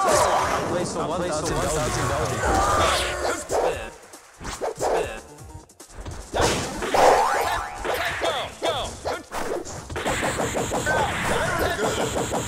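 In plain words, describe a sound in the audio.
Cartoonish fighting game hits, whooshes and explosions ring out in quick succession.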